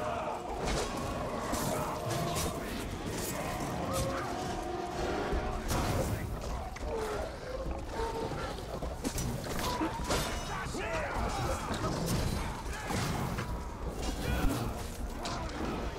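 Beasts snarl and growl.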